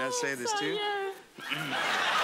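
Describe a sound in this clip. A woman squeals and laughs excitedly.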